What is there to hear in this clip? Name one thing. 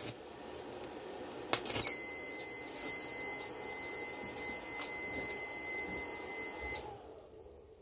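An electric welding arc crackles and hisses close by.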